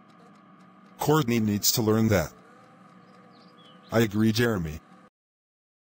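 A second man answers calmly in a flat, computer-made voice.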